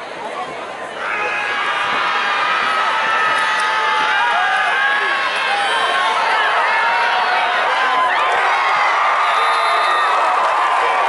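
A large crowd cheers and shouts outdoors, growing louder as the play unfolds.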